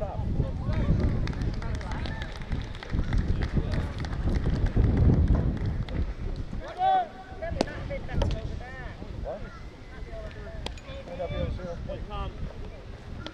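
A crowd of spectators chatters and calls out outdoors at a distance.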